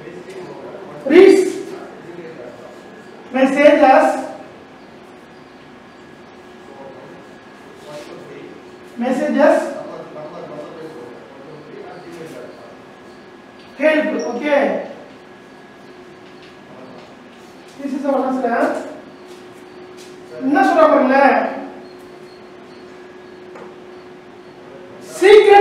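A man speaks loudly in short bursts, with pauses between them.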